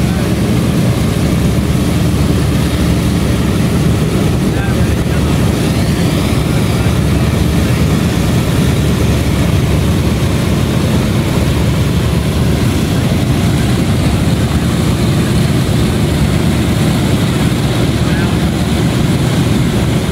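The piston engines of a large propeller plane roar loudly and steadily nearby.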